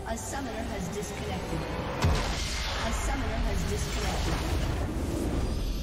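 Game spells and weapons clash and explode in a busy fight.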